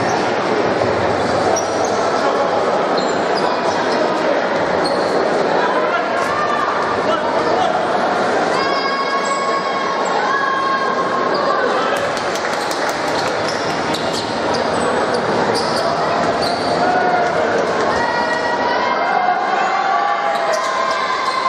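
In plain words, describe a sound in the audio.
A large crowd murmurs and cheers in an echoing indoor arena.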